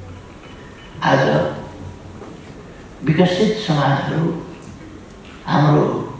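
An elderly man speaks firmly into a microphone in a large echoing hall.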